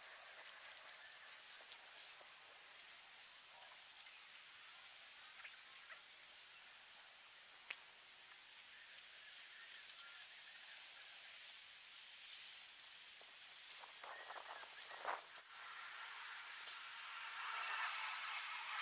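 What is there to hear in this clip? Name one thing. Leaves and stalks rustle as a man handles plants outdoors.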